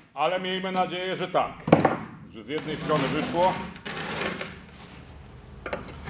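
A heavy metal casing thuds and scrapes as it is turned over.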